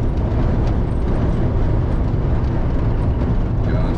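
A lorry's tyres roar on the road nearby.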